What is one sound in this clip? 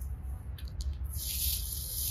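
Leaves rustle as a hand brushes through them.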